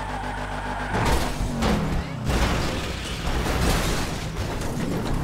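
A car crashes and tumbles with loud scraping thuds.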